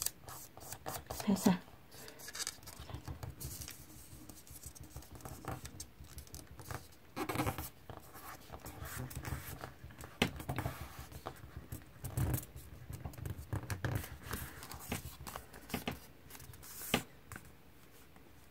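Paper rustles and crinkles as hands fold it.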